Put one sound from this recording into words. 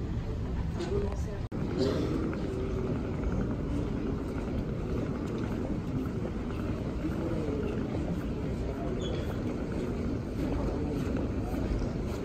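Suitcase wheels roll steadily over a hard floor.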